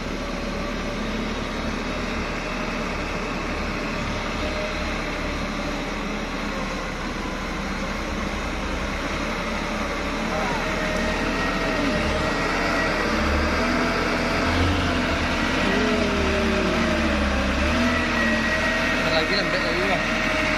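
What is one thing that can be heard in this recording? A heavy truck engine rumbles as the truck creeps slowly closer.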